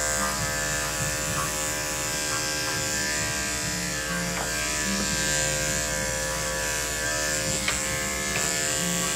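Electric clippers buzz steadily close by.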